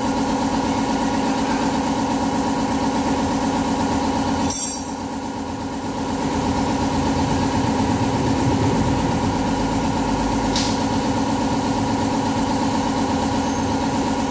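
Metal tools clink against a motorcycle's parts.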